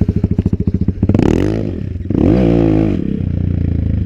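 A pit bike engine revs hard and climbs in pitch.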